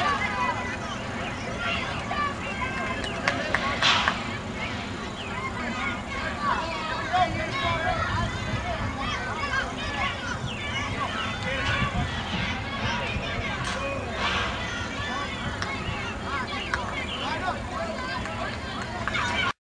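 A crowd of spectators chatters outdoors at a distance.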